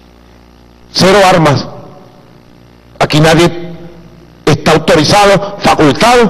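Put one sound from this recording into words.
A man speaks forcefully into a microphone, in bursts with pauses.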